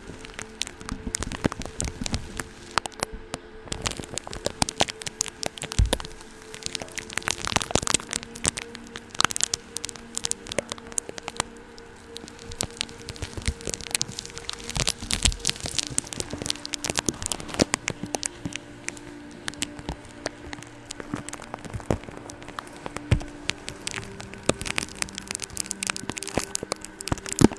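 A woman whispers softly and closely into a microphone.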